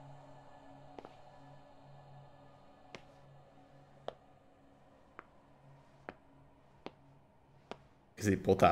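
Footsteps tap at an even pace on a hard floor.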